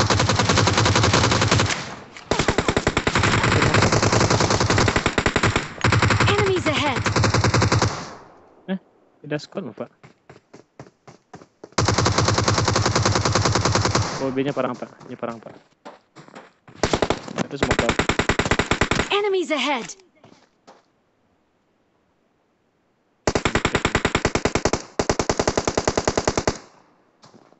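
An automatic rifle fires in long rapid bursts.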